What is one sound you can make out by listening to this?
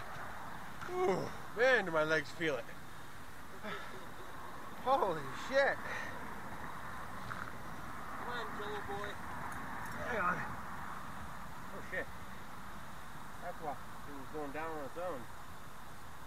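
A man speaks nearby in short phrases.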